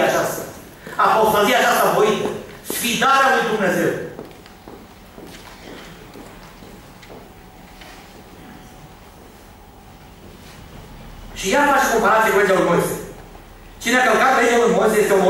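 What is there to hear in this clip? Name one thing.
An elderly man speaks with animation into a microphone, with pauses between phrases.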